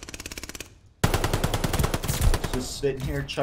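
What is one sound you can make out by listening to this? A submachine gun fires a rapid burst at close range.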